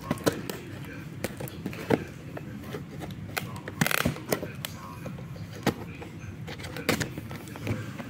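Packing tape crackles as fingers peel it from cardboard.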